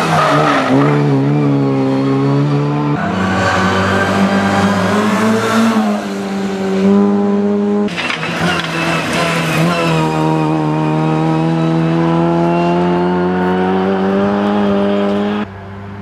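A small four-cylinder rally car engine revs hard through the gears.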